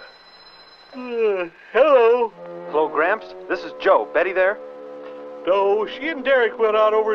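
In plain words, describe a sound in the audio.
An elderly man talks loudly into a telephone.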